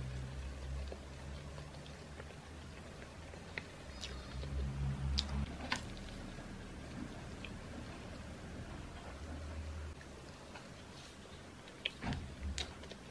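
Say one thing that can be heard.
A young woman chews food close to a microphone, with soft wet mouth sounds.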